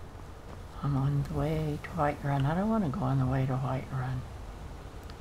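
An elderly woman speaks into a microphone, close by.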